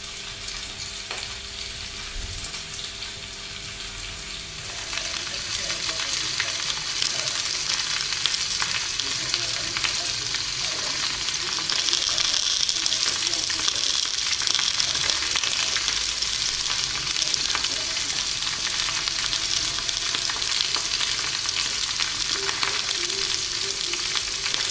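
Sausages sizzle and spit in hot fat in a frying pan.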